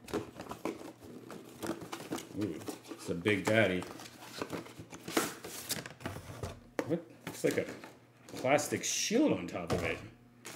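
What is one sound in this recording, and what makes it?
A cardboard box rustles as it is handled.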